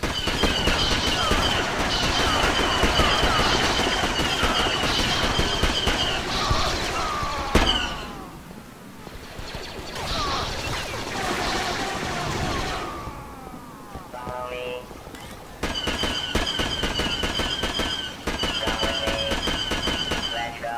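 Laser guns fire in rapid bursts of sharp shots.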